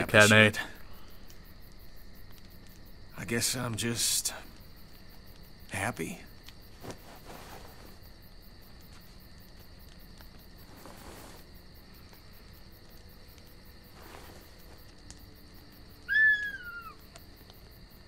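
A young man speaks briefly, close to a microphone.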